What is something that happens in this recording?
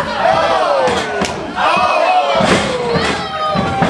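A wrestler's body slams onto the ring mat with a loud thud.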